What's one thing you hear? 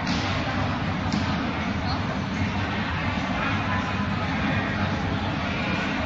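A crowd of spectators murmurs and chatters throughout in a large echoing hall.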